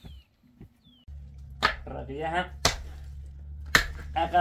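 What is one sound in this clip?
A pickaxe strikes hard dirt with dull thuds.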